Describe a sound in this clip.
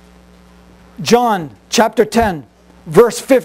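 A man reads aloud calmly through a microphone.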